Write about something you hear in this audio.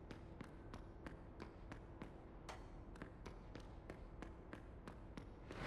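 Hands and knees knock in a quick, steady rhythm on a hollow metal floor while crawling.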